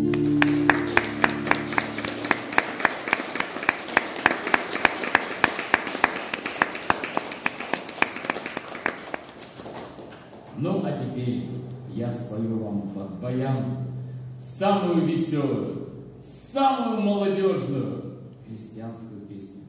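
An elderly man strums an acoustic guitar in a rhythmic pattern.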